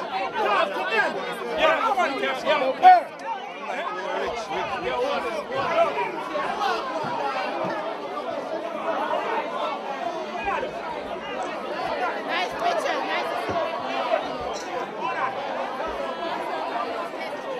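A crowd chatters loudly all around.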